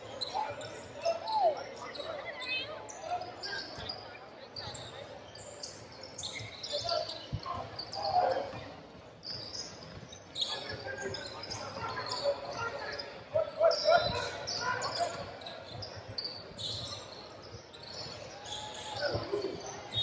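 Basketball shoes squeak sharply on a hardwood court.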